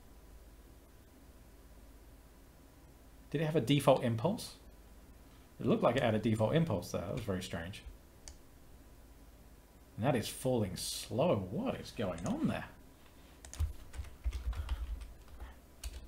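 Computer keys clatter as a man types.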